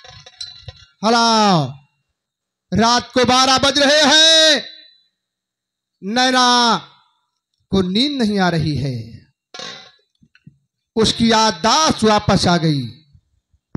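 A woman sings loudly through a loudspeaker in short bursts.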